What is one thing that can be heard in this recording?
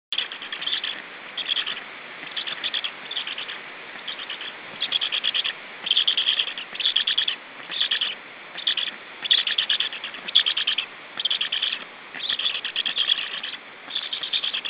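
Young storks in a nest call in short, rapid, raspy bursts, over and over.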